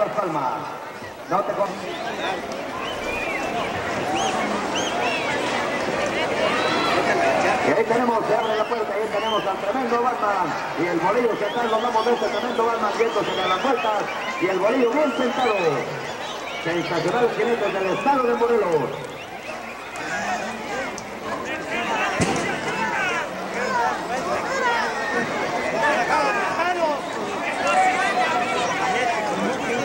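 A crowd of spectators shouts and cheers throughout.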